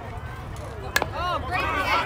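A softball bat cracks against a ball.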